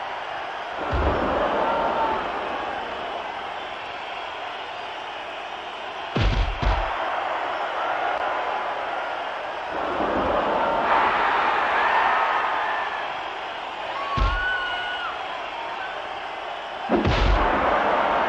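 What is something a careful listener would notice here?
Bodies slam down with heavy thuds.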